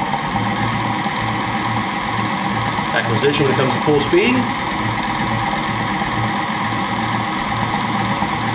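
An electric motor hums steadily with a soft, even pulsing.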